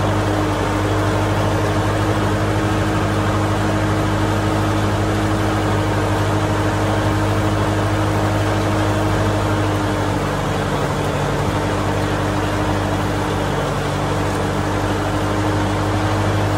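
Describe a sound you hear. A tiller's rotating blades churn through wet mud.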